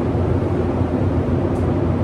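A spray gun hisses in short bursts.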